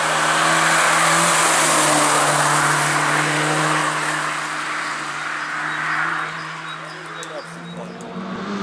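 A rally car engine roars loudly as the car speeds past and fades into the distance.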